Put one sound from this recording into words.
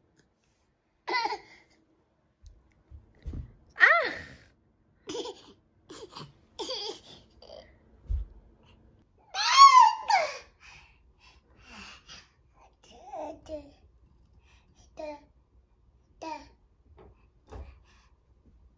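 A baby babbles and squeals nearby.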